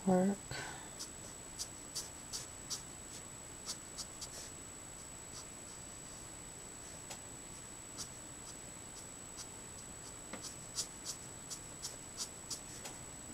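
A felt-tip marker squeaks and taps softly on paper.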